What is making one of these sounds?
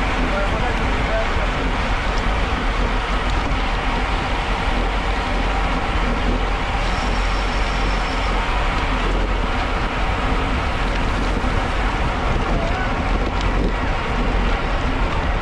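Bicycle tyres hiss on a wet road.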